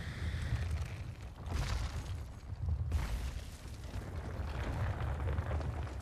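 A giant creature stomps heavily, with deep rumbling thuds.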